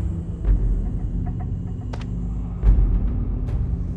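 A soft menu click sounds once.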